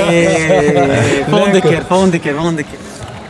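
Several men laugh loudly close by.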